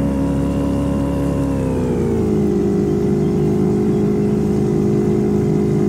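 A boat's outboard motor drones steadily and drops in pitch as the boat slows.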